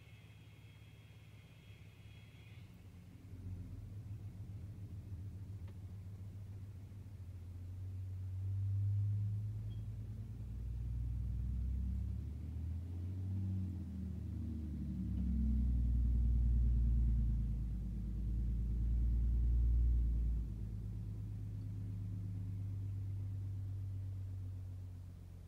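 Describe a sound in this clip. A vehicle engine idles with a low, steady rumble.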